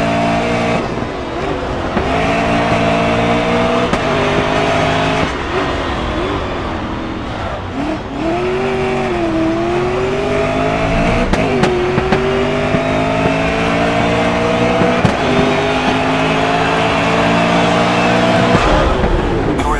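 A racing car engine roars, revving up and dropping as the gears change.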